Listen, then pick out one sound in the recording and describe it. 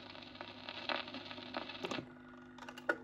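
A record crackles faintly as the needle runs in its groove.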